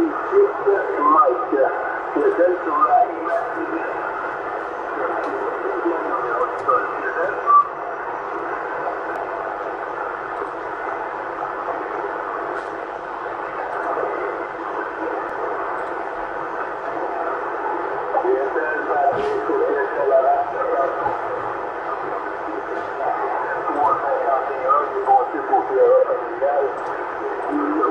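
A distant voice comes weakly through a CB radio loudspeaker amid static.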